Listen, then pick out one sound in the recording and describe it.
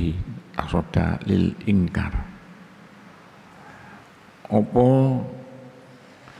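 An older man speaks calmly into a microphone, with long pauses.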